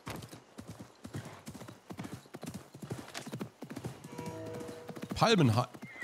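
A horse's hooves thud quickly on a dirt track.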